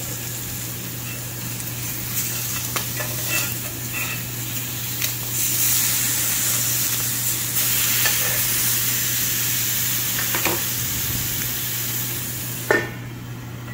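Meat sizzles in a hot pan.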